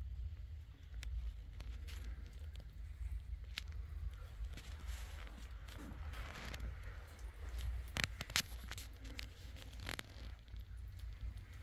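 Crumbly plaster scrapes and crackles as fingers pick at a wall.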